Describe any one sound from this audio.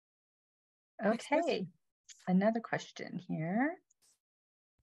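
A middle-aged woman speaks warmly over an online call.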